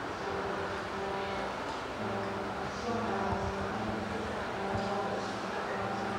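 An escalator hums steadily as it runs.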